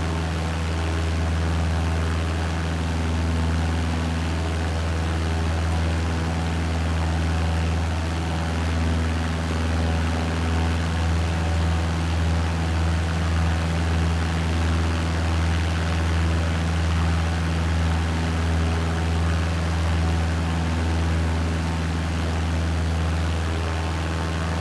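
A small propeller plane's engine drones steadily, with a low hum that gently pulses.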